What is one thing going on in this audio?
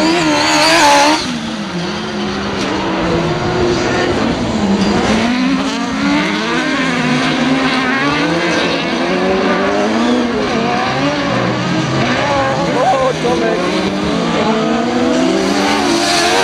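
Racing buggy engines rev and whine loudly, rising and falling in pitch.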